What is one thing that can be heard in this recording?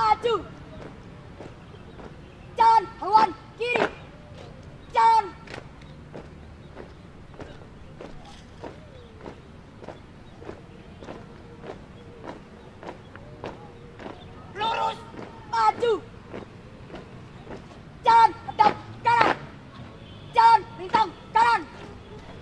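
Shoes stamp on pavement in a steady marching rhythm.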